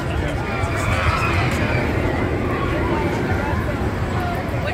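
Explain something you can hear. A roller coaster train rumbles along its track in the distance.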